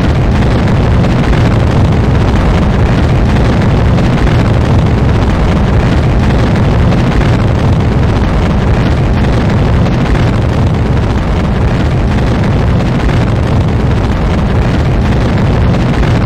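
A rocket engine roars steadily with a deep rumble.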